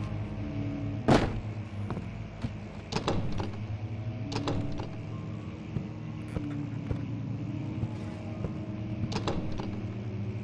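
A locked door handle rattles and clicks.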